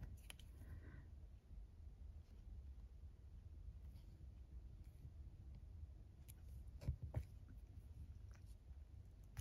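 Small knocks and clicks sound as hands fasten a button.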